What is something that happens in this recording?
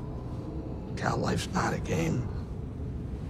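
A creature speaks in a gravelly, animated voice, close by.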